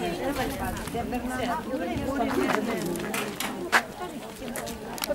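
Several men and women talk and murmur nearby outdoors.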